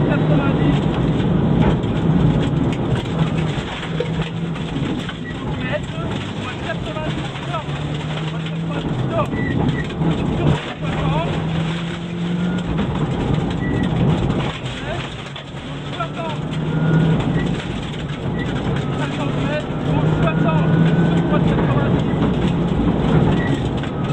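A rally car engine roars and revs hard inside the cabin.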